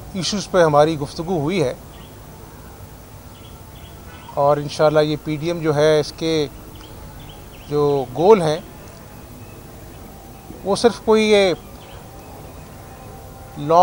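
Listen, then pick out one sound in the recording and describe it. A man speaks into microphones in short bursts, with pauses between phrases.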